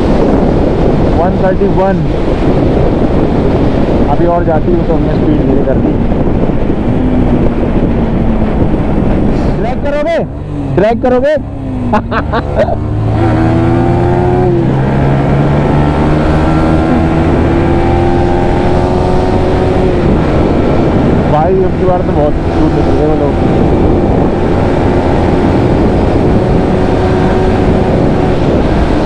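Wind rushes past a rider at speed on a highway.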